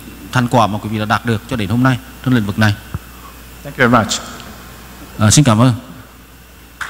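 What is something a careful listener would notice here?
A man speaks into a microphone over loudspeakers in a large echoing hall.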